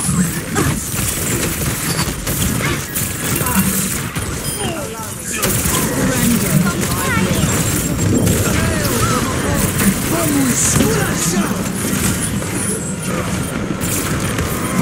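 Energy pistols fire in rapid bursts of zapping shots.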